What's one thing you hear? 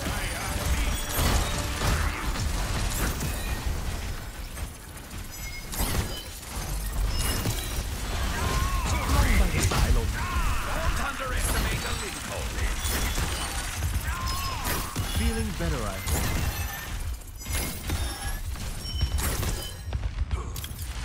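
Energy weapons fire in rapid bursts with sharp zaps and blasts.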